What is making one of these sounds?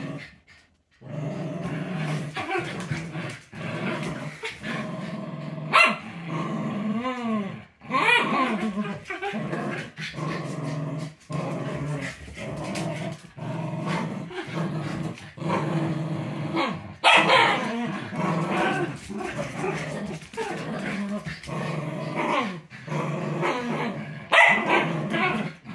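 Two dogs growl playfully while tugging at a toy.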